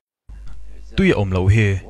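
A man speaks in a low, calm voice close by.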